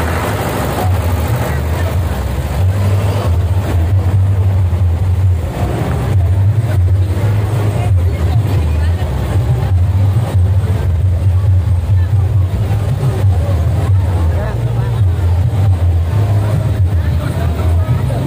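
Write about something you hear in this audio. Loud music with a booming bass beat plays from a large sound system outdoors.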